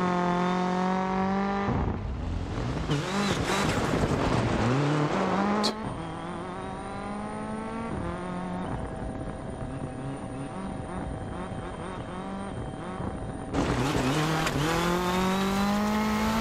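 A rally car engine revs hard and shifts gears as the car speeds along.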